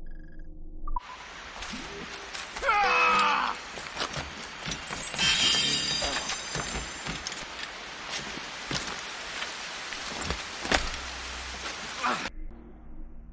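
Water rushes down a waterfall.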